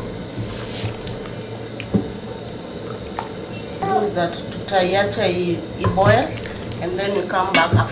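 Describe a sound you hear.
A wooden spoon stirs and scrapes inside a metal pot.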